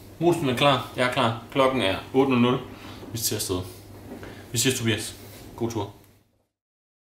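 A young man talks calmly and close up.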